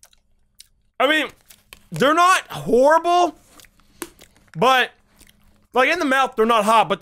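A young man groans and whines loudly into a close microphone.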